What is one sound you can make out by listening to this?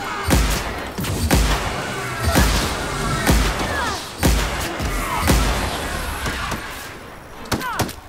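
Rapid gunfire rattles and booms in bursts.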